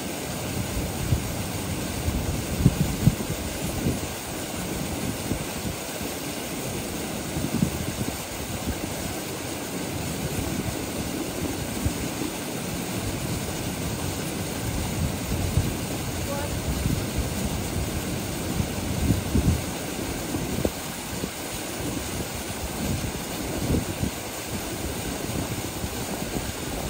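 A shallow stream burbles over rocks.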